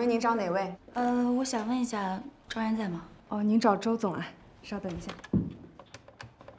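Another young woman answers politely, close by.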